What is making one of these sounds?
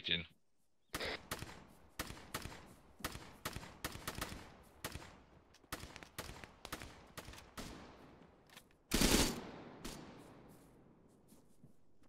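Rifle shots crack in quick bursts nearby.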